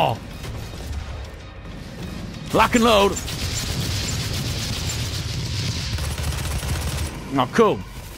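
Heavy gunfire blasts rapidly in a game.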